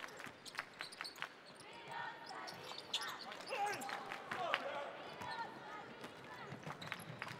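Sneakers squeak on a hardwood basketball court.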